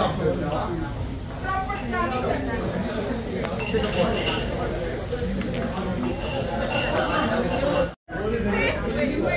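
Men and women chat together nearby in a lively group.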